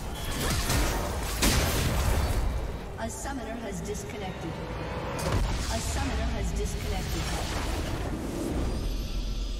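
Game spell effects crackle and whoosh in a fight.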